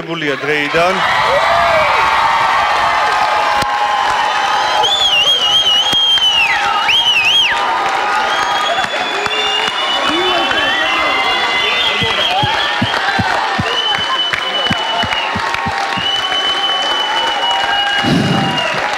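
A large crowd cheers and screams in an echoing hall.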